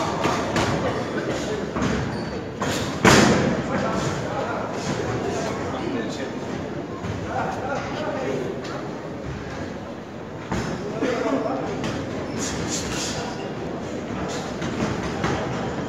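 Gloved punches thud and slap in quick bursts.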